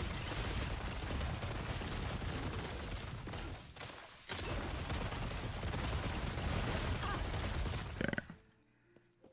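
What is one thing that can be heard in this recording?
Game spells crackle and explode loudly.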